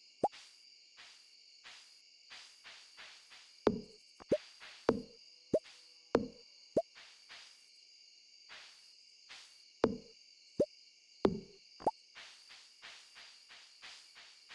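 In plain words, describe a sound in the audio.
Light footsteps patter steadily across soft ground.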